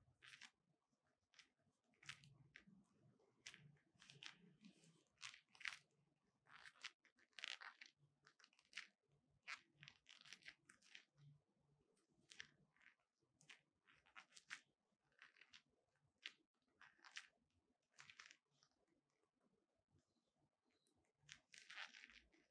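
Leather gloves creak and rustle as hands rub together.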